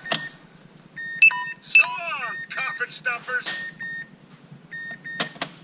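Electronic beeps and chimes sound from a car's dashboard unit.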